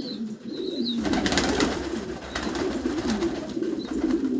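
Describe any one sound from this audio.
Pigeon wings flutter and flap briefly.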